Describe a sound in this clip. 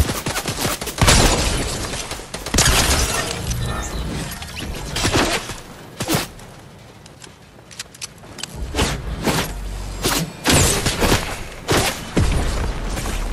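A shotgun blasts loudly a few times.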